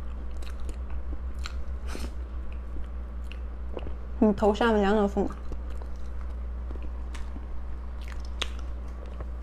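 A young woman chews soft cream cake close to a microphone, with wet mouth clicks.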